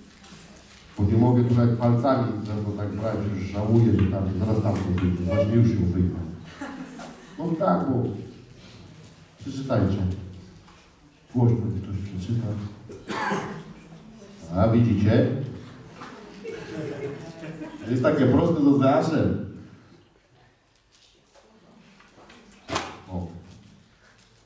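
A man speaks calmly into a microphone, heard over loudspeakers in a large echoing hall.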